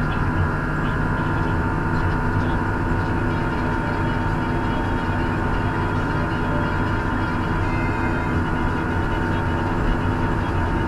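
Tyres rumble steadily on a road.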